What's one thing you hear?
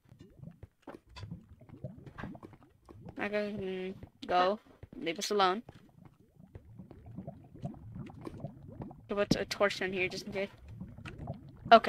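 Lava pops and bubbles.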